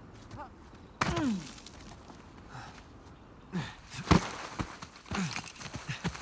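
A man grunts and strains with effort.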